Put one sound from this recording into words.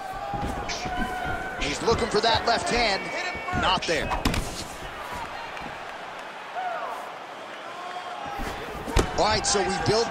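Fists thump against bodies in quick blows.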